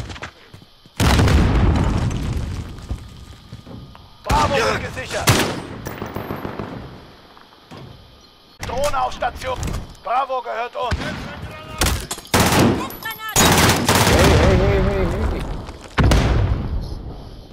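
Rapid gunshots fire in loud bursts close by.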